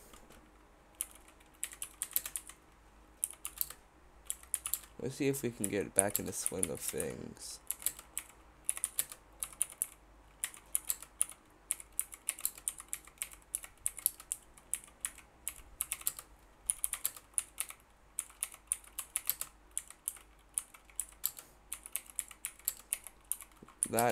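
Keys on a keyboard click in quick, uneven taps.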